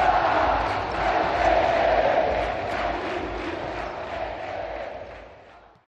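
A large crowd of fans chants and cheers loudly in a big echoing hall.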